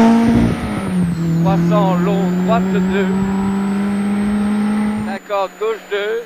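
A rally car engine drones steadily in the distance.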